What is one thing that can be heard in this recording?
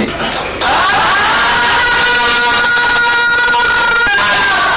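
A woman cries out in a long, steady scream.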